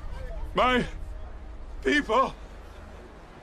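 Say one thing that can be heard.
A man speaks with emotion, close by.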